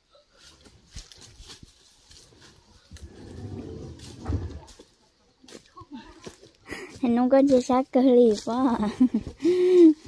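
Dry leaves crunch underfoot as a person walks close by.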